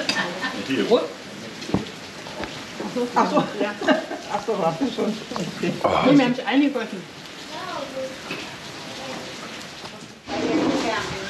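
A middle-aged man talks casually close by.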